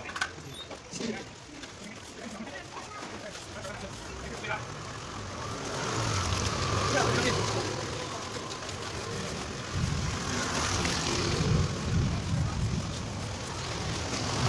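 Metal scoops scrape against wet concrete.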